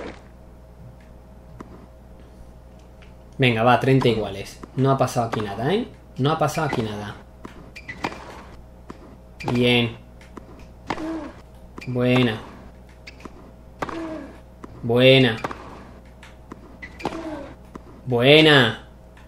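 A tennis ball is hit with a racket, again and again.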